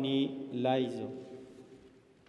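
A man sings a brief line of chant, echoing in a large room.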